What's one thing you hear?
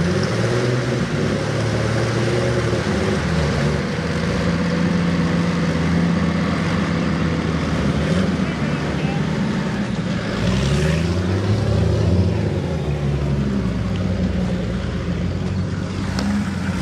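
Tractor engines rumble and roar loudly outdoors.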